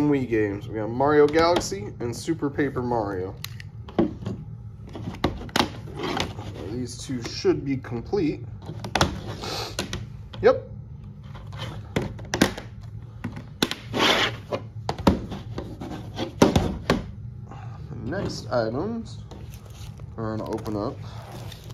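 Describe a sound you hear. Plastic game cases click and clatter as they are opened and handled.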